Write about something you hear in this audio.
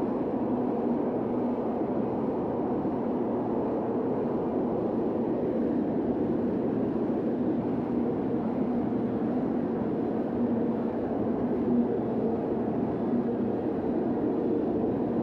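Heavy rain pours steadily onto pavement.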